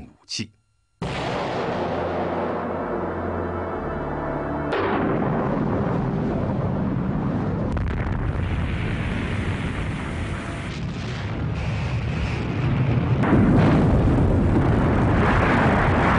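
A huge explosion roars and rumbles deeply.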